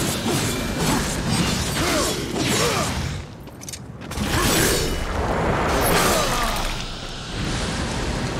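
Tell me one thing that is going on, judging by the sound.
Blades clash and slash in a fierce fight.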